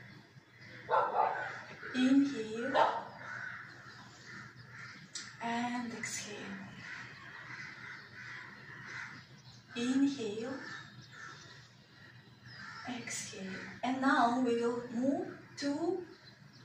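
A woman speaks calmly and clearly nearby, in short phrases with pauses.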